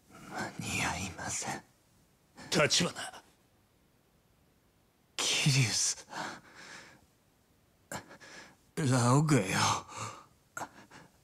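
A wounded young man speaks weakly and strained, close by.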